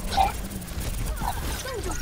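Explosions boom in a game.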